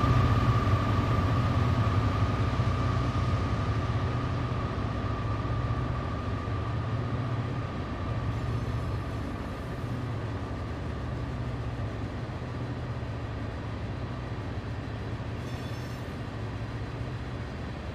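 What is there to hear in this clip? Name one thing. Freight cars clatter and rattle over the rails.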